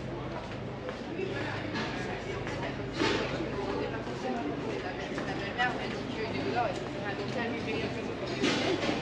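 Men and women chat faintly at a distance outdoors.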